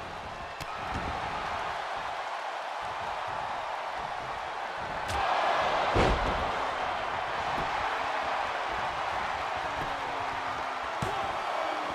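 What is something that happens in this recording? Heavy thuds of bodies hitting a mat ring out.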